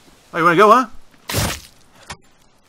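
An axe thuds into an animal's body.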